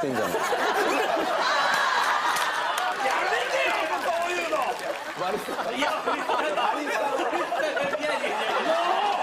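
Several men talk and shout excitedly over one another.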